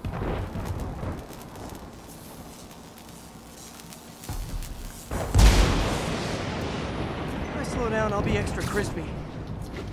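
Energy blasts crackle and boom.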